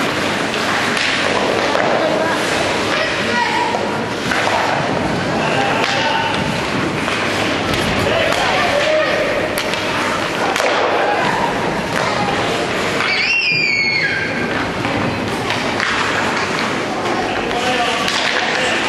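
Young children shout and cheer nearby.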